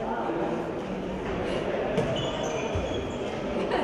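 A handball thuds as it is bounced and passed.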